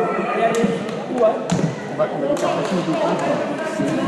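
A basketball bounces on a hard court in an echoing hall.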